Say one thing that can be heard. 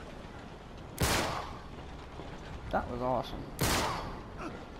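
A pistol fires single loud shots.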